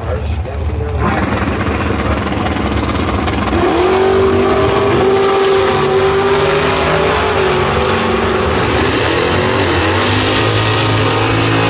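Race car engines roar loudly nearby.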